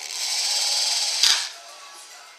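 A power drill whirs briefly up close.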